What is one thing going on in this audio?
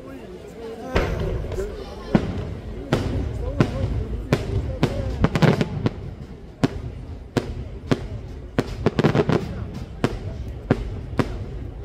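Fireworks bang and pop repeatedly in the open air.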